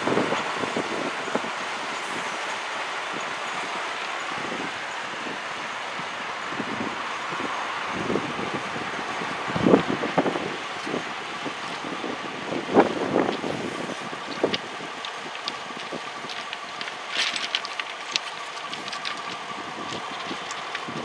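A diesel locomotive engine rumbles steadily as it slowly approaches.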